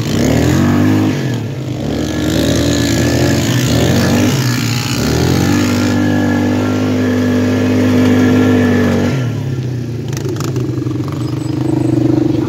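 A quad bike engine revs up and down close by.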